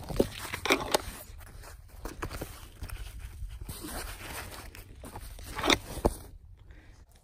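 Fabric rustles and a zipper pouch is handled up close.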